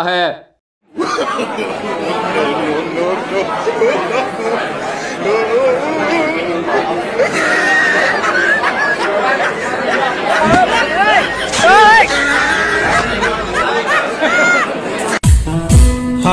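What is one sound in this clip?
A crowd of people chatters and cheers loudly nearby.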